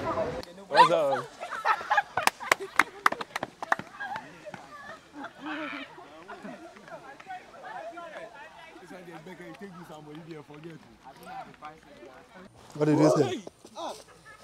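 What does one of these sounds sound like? A group of young people chatter and laugh as they walk.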